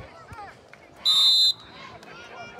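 A referee's whistle blows sharply once.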